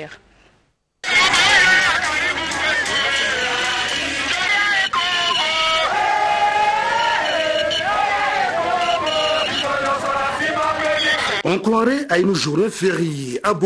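A large crowd sings loudly outdoors.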